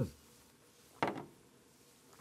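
A glass knocks down on a hard surface.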